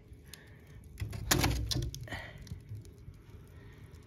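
A split log thuds onto embers in a woodstove.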